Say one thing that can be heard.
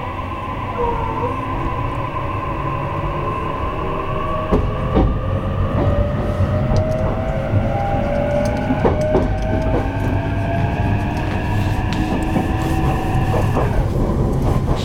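A train's electric motor whines, rising in pitch as the train speeds up.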